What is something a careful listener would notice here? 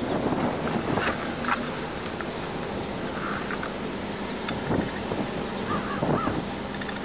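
A bus engine idles nearby with a low rumble.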